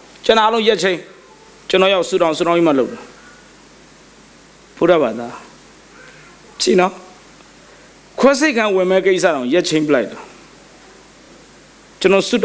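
A man speaks with emphasis through a microphone, pausing between phrases.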